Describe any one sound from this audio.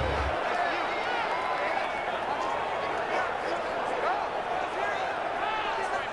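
A large stadium crowd roars and cheers in the distance.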